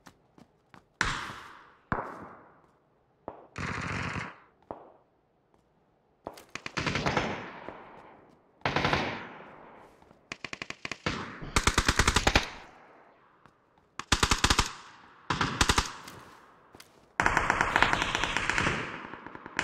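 Rapid bursts of gunfire crack and echo.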